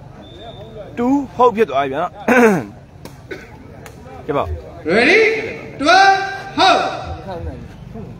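Spectators shout and cheer loudly.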